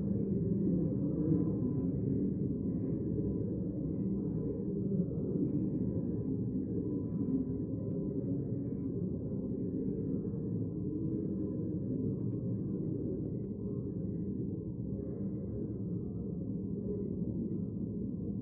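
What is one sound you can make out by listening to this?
Men and women murmur and chat quietly in a large echoing hall.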